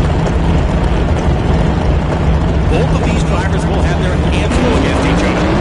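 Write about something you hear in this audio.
A racing engine idles with a deep, lumpy rumble.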